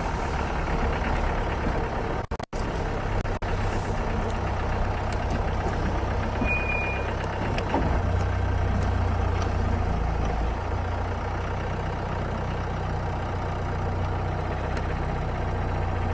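The open vehicle rattles and bumps over the rough ground.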